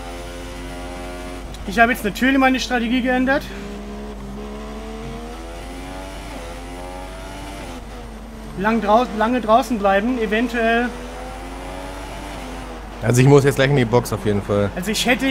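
A racing car engine whines steadily, its pitch rising and falling with the gears.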